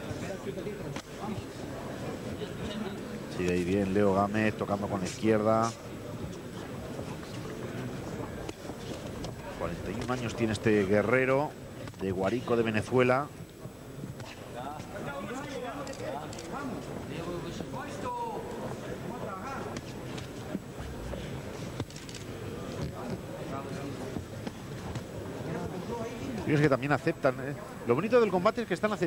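A crowd murmurs in a large hall.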